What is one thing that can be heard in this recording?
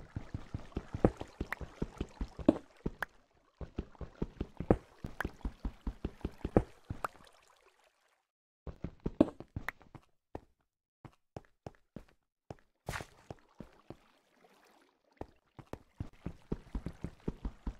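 Footsteps tap quickly on stone, stopping and starting.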